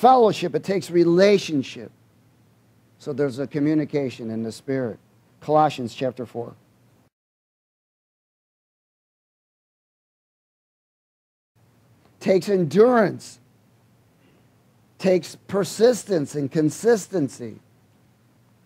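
A middle-aged man speaks steadily through a microphone, pausing now and then.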